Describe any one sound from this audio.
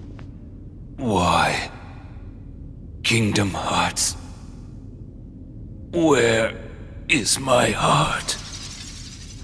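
A man speaks slowly and menacingly, close by.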